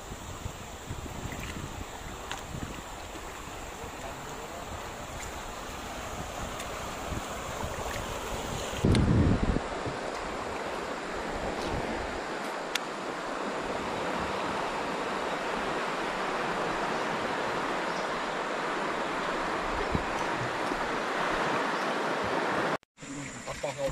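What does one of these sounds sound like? Water rushes steadily past a small boat, outdoors in the open air.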